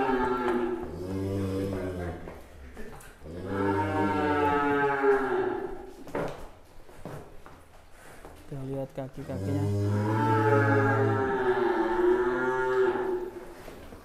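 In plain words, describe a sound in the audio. A bull bellows loudly and long, several times, close by.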